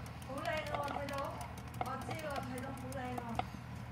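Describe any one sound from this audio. A hamster runs in a plastic exercise wheel.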